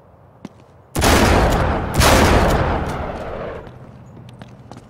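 A gun fires two loud shots that echo and fade.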